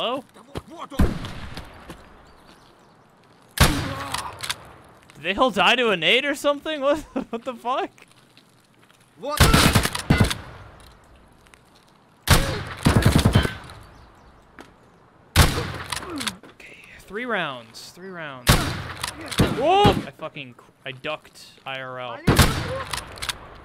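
A shotgun fires loud, booming shots several times.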